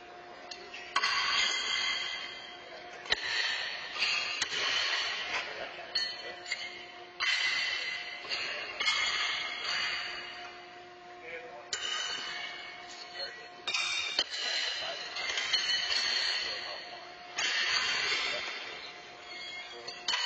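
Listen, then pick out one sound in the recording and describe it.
Horseshoes clang against steel stakes in a large echoing hall.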